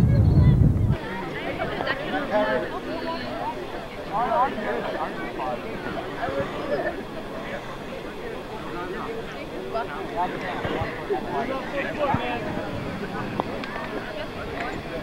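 A crowd of young people chatter nearby outdoors.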